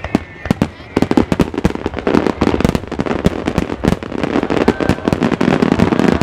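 Firework bursts crackle and fizz.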